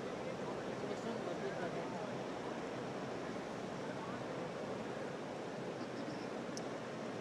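A large crowd applauds steadily.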